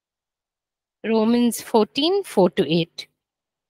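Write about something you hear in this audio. A young woman sings into a close microphone.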